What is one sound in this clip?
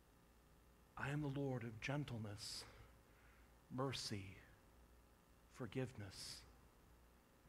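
A man speaks slowly and calmly through a microphone in a large echoing hall.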